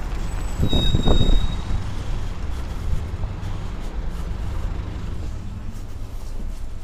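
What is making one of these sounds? A tram rumbles low and steady close by.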